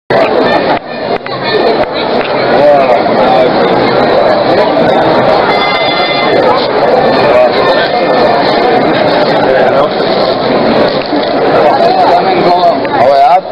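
A crowd of men chatters loudly close by.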